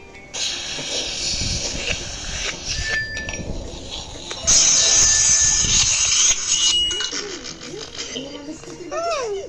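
Cartoonish game sound effects play from a small speaker.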